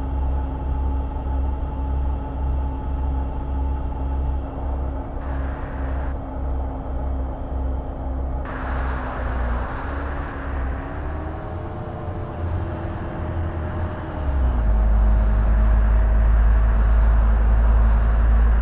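A bus engine hums steadily and shifts in pitch as the bus speeds up.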